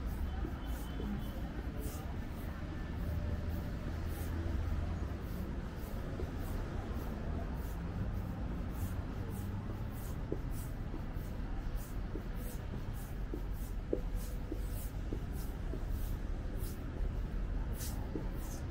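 City traffic rumbles steadily in the distance.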